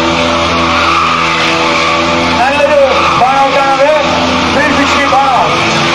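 Motorcycle tyres screech on pavement.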